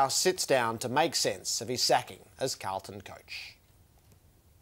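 A middle-aged man speaks calmly into a microphone, presenting to listeners.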